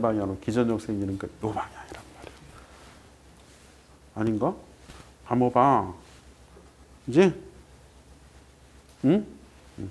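A man speaks animatedly in short bursts, close to a microphone.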